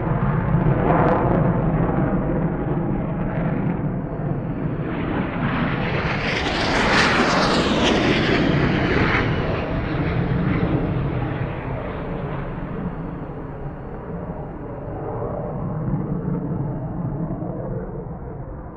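Jet engines roar loudly, swelling and then slowly fading.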